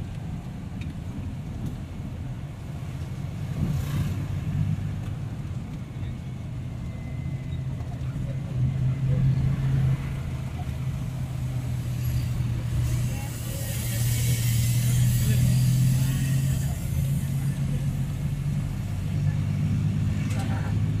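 A vehicle's engine hums steadily from inside the cabin.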